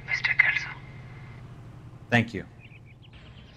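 A man speaks calmly on a telephone.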